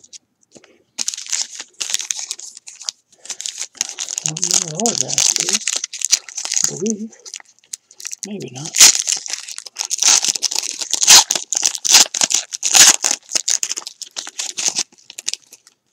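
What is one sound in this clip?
A foil trading card pack crinkles and tears as it is ripped open by hand.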